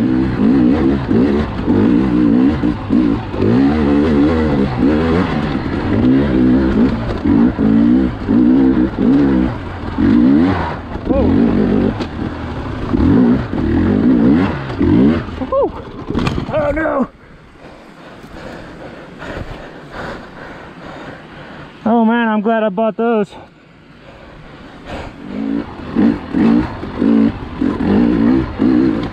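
A dirt bike engine revs up and down loudly close by.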